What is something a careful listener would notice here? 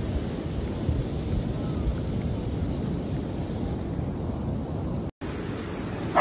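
Wind blows across an open beach.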